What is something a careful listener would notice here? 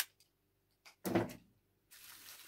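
A metal pan clanks onto a stove.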